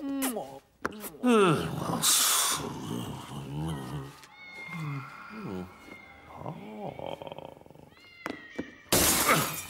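A man mumbles and hums to himself in a cartoonish voice.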